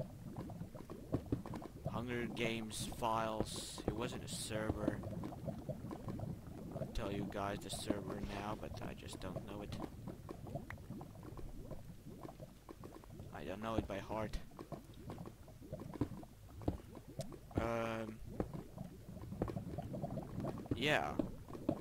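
Lava bubbles and pops steadily.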